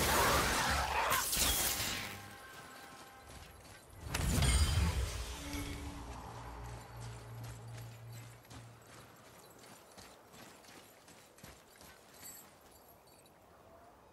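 Heavy footsteps crunch on gravel.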